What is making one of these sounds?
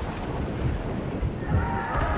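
Cannons fire with heavy booms.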